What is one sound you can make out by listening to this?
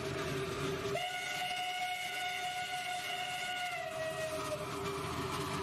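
A steam whistle blows a long, steady note, then drops slightly in pitch.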